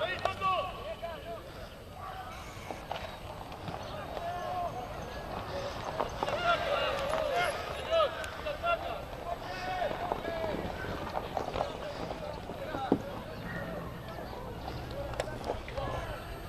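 Rugby players shout to each other across an open field.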